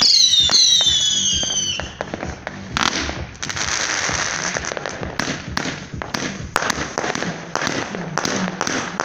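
Fireworks crackle and pop in rapid bursts.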